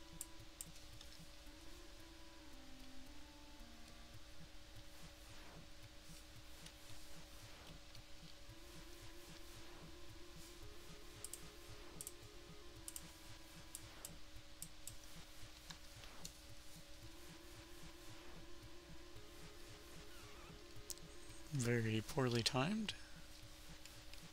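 Simple electronic game music plays steadily.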